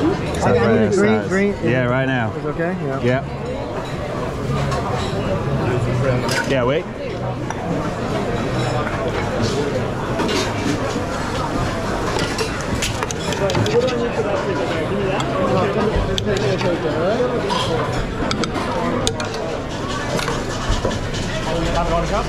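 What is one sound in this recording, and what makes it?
Many voices chatter in a busy, echoing room.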